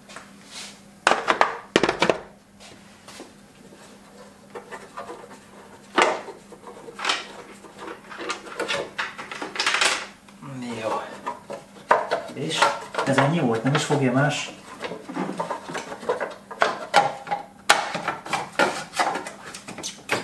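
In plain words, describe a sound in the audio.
Metal tools clink and clatter against engine parts.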